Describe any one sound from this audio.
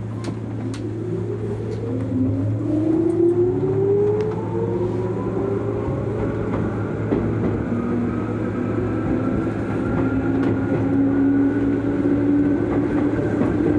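A train's electric motors whine, rising in pitch as the train pulls away.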